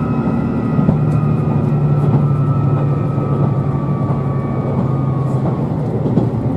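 A train's motor whines and slowly drops in pitch.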